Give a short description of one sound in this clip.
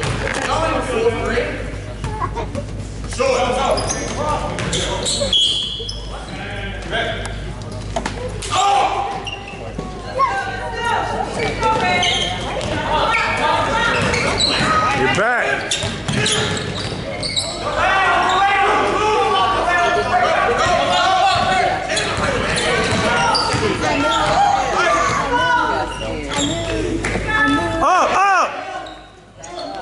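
Spectators talk and shout nearby in an echoing gym.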